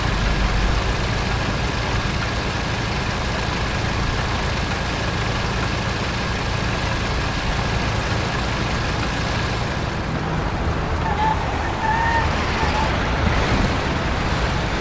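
An old car engine drones steadily as the car drives along.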